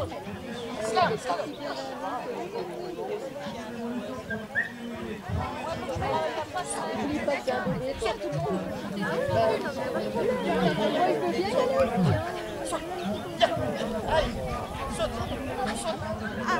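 A crowd murmurs in the distance.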